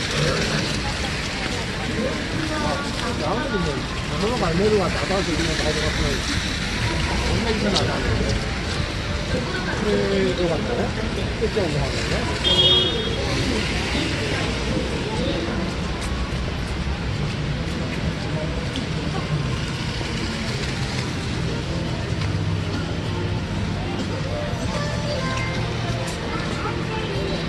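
Footsteps splash on a wet pavement.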